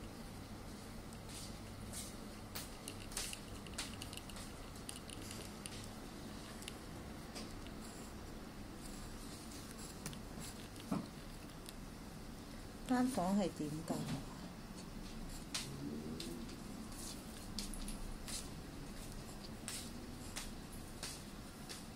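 A pencil scratches and taps on paper.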